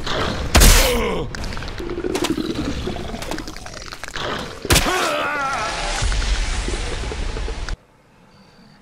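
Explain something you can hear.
A large beast roars and snarls close by.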